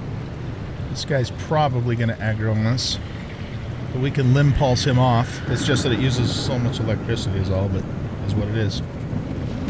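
An older man talks into a microphone.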